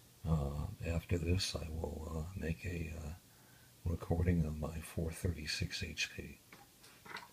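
A man's voice speaks briefly in a tinny, crackly way over a small radio scanner speaker.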